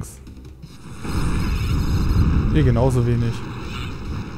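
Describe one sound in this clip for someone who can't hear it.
A crackling electric beam zaps loudly.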